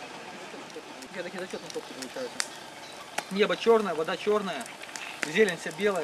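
A campfire crackles close by.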